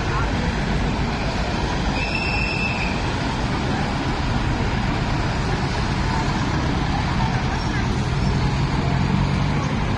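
A crowd of people chatter and call out outdoors.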